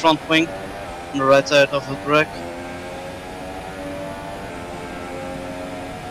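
A racing car engine whines at high revs.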